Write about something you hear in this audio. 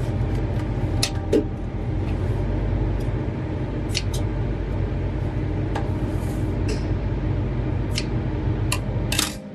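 Scissors snip sharply a few times.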